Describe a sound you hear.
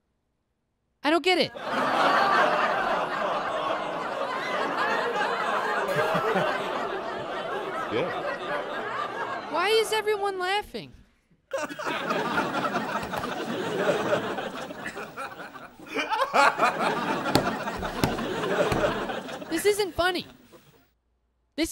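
A small audience laughs loudly.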